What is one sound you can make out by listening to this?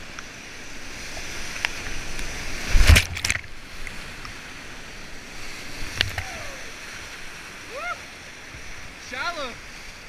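White water rushes and roars loudly close by.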